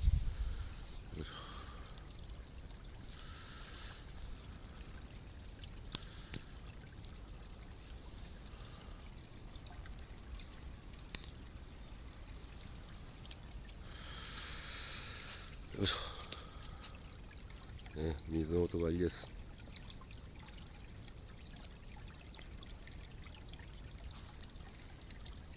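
Wind rumbles softly outdoors.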